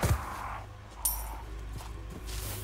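A knife slashes through the air.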